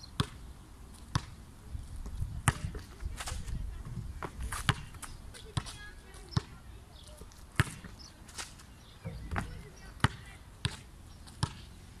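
A basketball bounces sharply on hard pavement outdoors.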